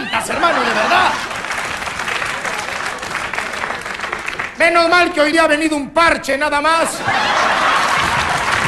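An audience laughs and cheers loudly in a large room.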